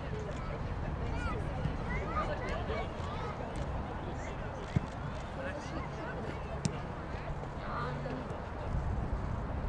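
A crowd of children chatters and calls out in the distance outdoors.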